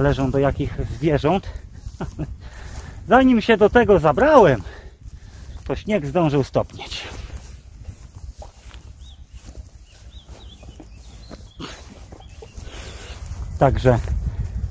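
A man talks calmly close to the microphone in bursts.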